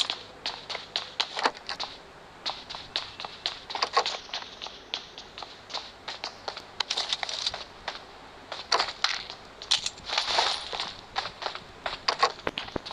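Footsteps thud quickly across a hard floor.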